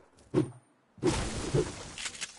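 An explosion booms in a video game.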